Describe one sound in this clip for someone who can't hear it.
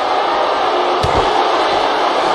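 A heavy body slams onto the floor with a thud.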